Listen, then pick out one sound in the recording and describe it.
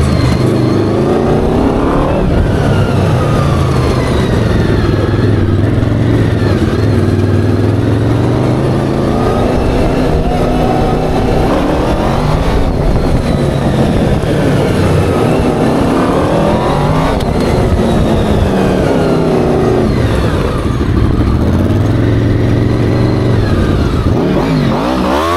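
A small engine roars and revs up and down close by.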